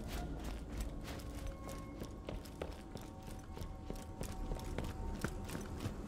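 Footsteps tread steadily over rocky ground.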